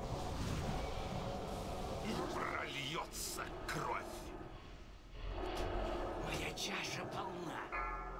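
Magic spells whoosh and crackle in a battle.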